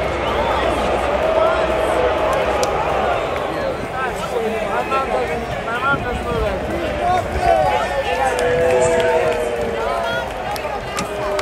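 A large crowd cheers and shouts loudly in an open stadium.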